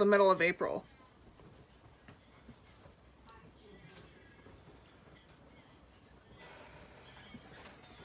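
A makeup brush softly brushes across skin.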